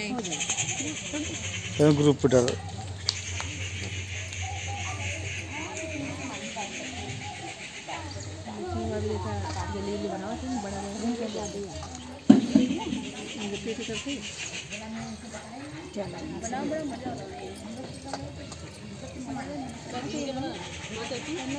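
Several women chatter together nearby.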